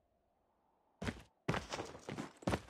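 Boots scrape and thud on rock as a soldier climbs.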